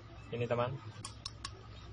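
Small metal objects click in a man's hands.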